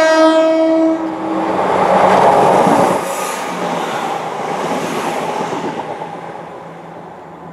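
A train rushes past close by with a roar of wheels on rails.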